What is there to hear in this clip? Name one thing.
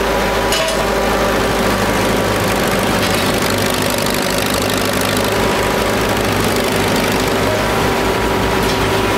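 An old diesel engine chugs and rumbles loudly close by.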